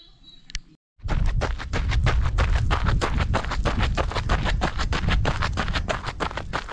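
Running footsteps crunch quickly on gravel.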